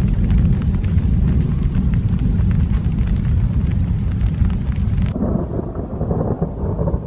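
Thunder rumbles in the distance.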